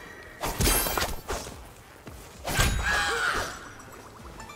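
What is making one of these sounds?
Heavy punches land with loud thuds and bursts.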